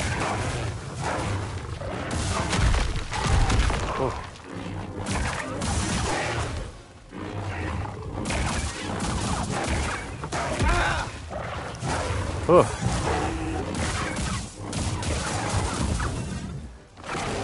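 Lightsabers hum and clash with sharp crackling hits.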